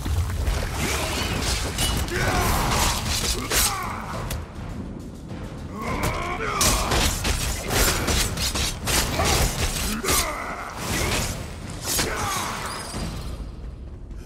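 Weapons strike and clash in a quick fight.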